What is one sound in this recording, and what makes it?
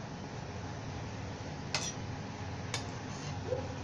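A metal spoon scrapes and taps on a steel plate.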